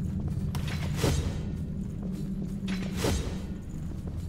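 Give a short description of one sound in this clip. A blade swings and strikes with sharp impacts.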